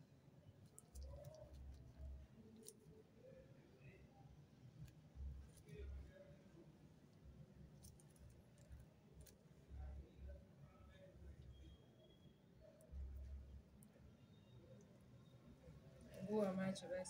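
A wax strip rips quickly off skin.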